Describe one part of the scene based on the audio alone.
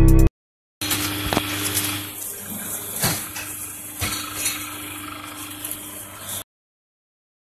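A machine hums and clanks as plates are pressed.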